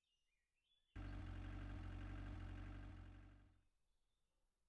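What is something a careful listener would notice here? A small car engine rumbles as a car drives up.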